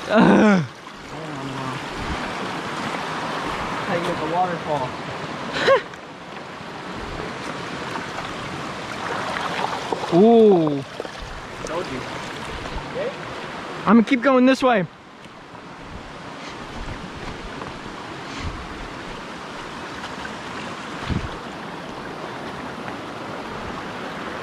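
Water rushes steadily over rocks in a nearby stream.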